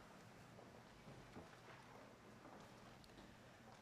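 Footsteps shuffle softly in a large, echoing hall.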